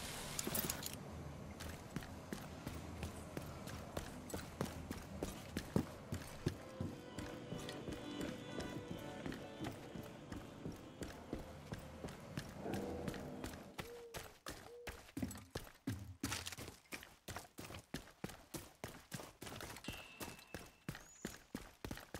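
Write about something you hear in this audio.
Footsteps run quickly and steadily on hard ground.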